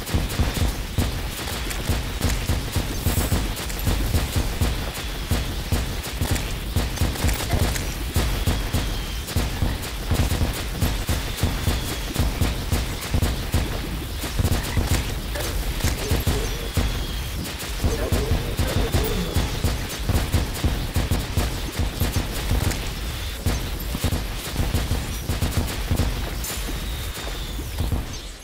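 Game weapons fire in rapid bursts of sharp blasts.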